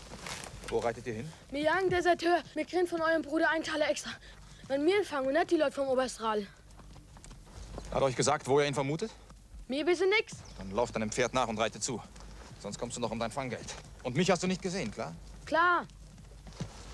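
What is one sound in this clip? A young man speaks up close.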